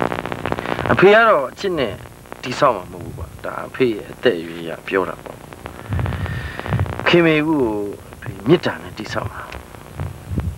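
An older man speaks slowly and calmly, close by.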